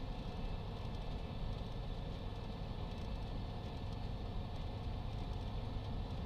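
A small aircraft engine drones steadily up close as its propeller spins.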